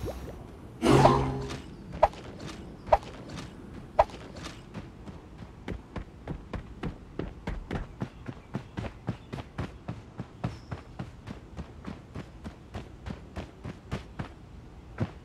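Quick, light footsteps patter steadily over ground.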